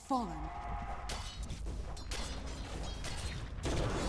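Video game fight effects clash and whoosh.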